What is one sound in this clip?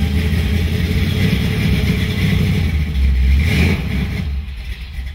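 A car engine rumbles as the car drives up onto a trailer.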